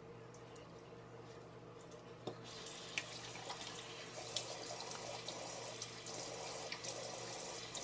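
Water splashes as a woman rinses her face.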